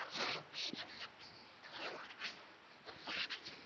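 A cloth rubs and swishes across a chalkboard.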